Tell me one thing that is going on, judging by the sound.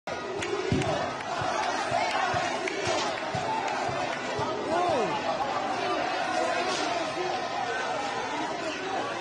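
A large crowd shouts and chants outdoors.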